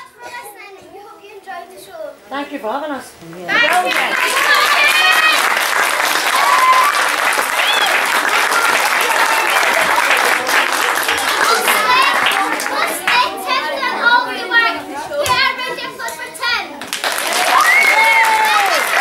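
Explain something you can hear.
A group of children sings loudly together in an echoing hall.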